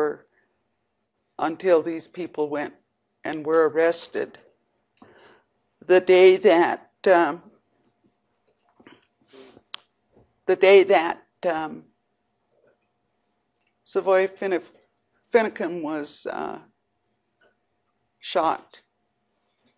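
An elderly woman speaks calmly into a microphone, with pauses.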